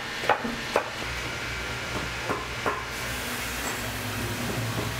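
A sewing machine motor hums low.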